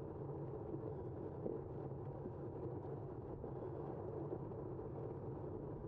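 Wind rushes steadily past in the open air.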